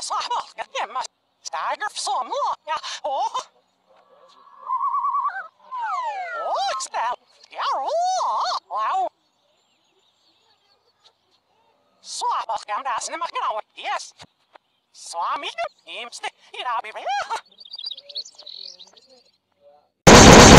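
A cartoon mouse speaks cheerfully in a high, squeaky male voice.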